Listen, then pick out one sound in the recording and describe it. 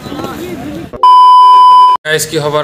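A steady, loud, high test tone beeps.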